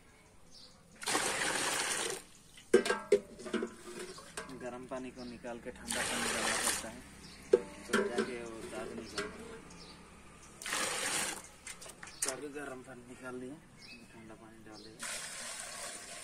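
Water pours and splashes into a metal pot.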